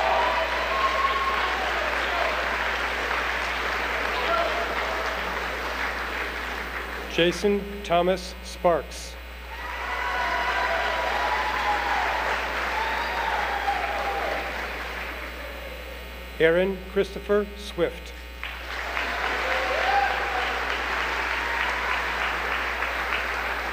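A crowd cheers and claps in a large hall.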